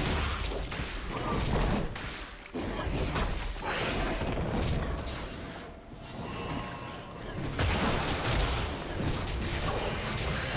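Magic blasts and weapon strikes crackle and whoosh in a fast fight.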